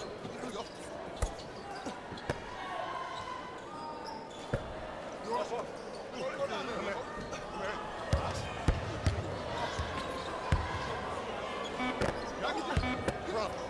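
A crowd murmurs steadily in a large hall.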